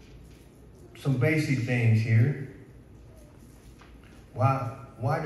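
A man speaks calmly into a microphone, heard through loudspeakers in an echoing room.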